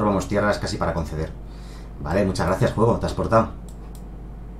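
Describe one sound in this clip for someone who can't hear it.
A man talks with animation through a close microphone.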